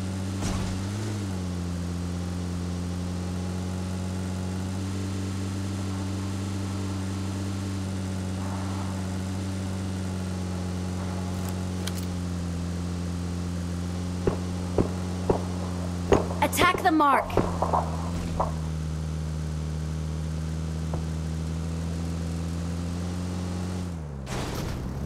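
A vehicle engine hums steadily as it drives.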